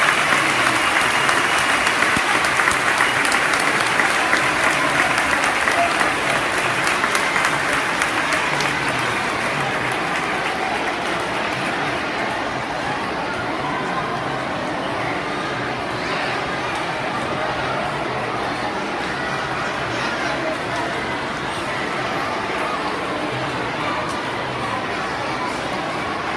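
A large crowd of children chatters and shouts loudly in a big echoing hall.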